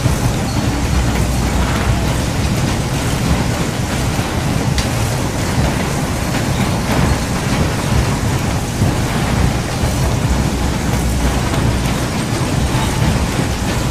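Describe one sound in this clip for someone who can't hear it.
A carousel turns with a low rumble.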